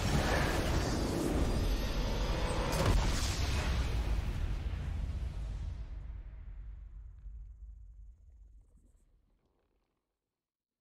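A triumphant game victory fanfare plays loudly and slowly fades away.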